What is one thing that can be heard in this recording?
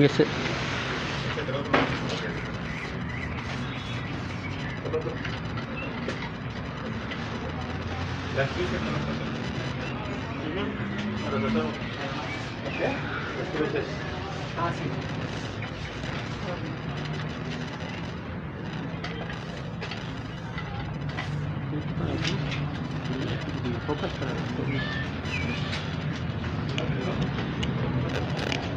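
A brush scrapes softly on a wall.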